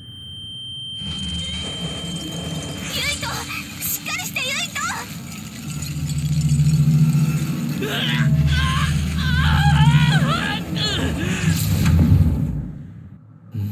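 Harsh electronic glitch noise crackles and buzzes.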